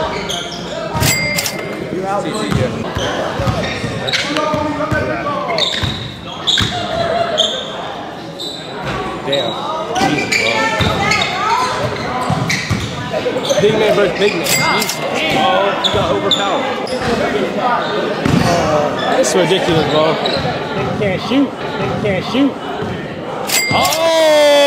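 Young men talk and call out in an echoing gym.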